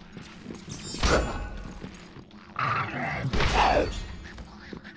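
A blade whooshes through the air and strikes with a heavy hit.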